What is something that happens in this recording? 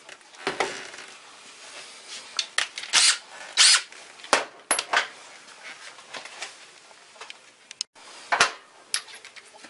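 A cordless drill knocks and clicks as it is handled.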